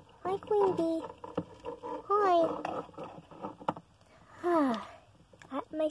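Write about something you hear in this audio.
A small plastic doll taps down onto a cardboard box.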